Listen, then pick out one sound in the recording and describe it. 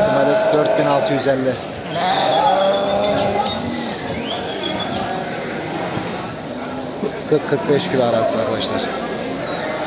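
Many sheep bleat loudly close by.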